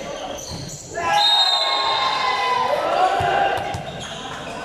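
Young women shout and cheer loudly close by.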